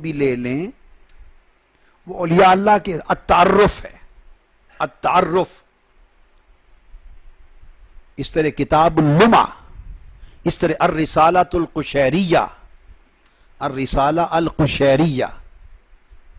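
A middle-aged man speaks with animation into a microphone, in bursts with pauses.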